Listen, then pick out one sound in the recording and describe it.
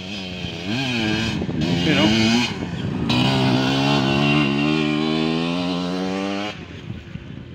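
A dirt bike engine revs loudly close by, rising and falling in pitch as it passes.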